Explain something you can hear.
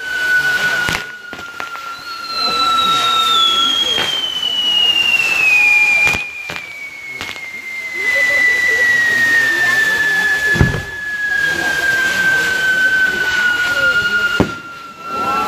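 Fireworks burst with sharp loud bangs.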